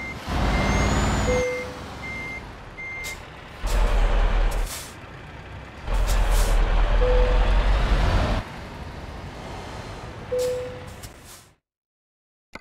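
A truck engine idles and revs in bursts.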